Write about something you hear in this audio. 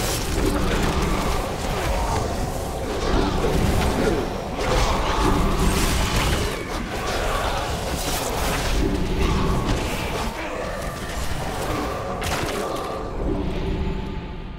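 Spell effects and weapon hits crash and whoosh in a game battle.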